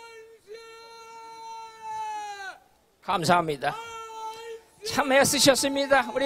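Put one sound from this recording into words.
An elderly man chants loudly outdoors in long, drawn-out sung tones.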